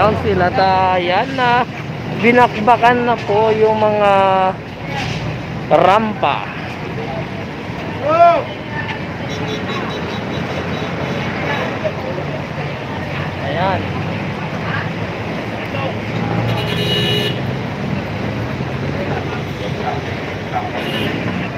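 Several men talk nearby outdoors.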